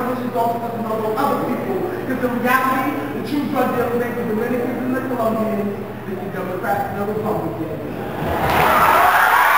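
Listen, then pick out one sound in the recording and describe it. A young man speaks with animation through a microphone in an echoing hall.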